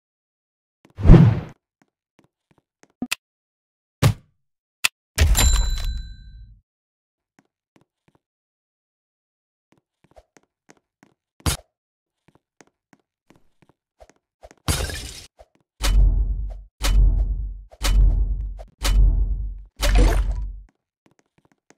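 Short electronic game sound effects play in bursts.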